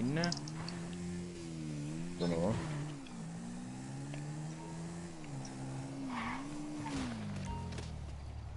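A motorbike engine drones and rises and falls in pitch as it speeds along.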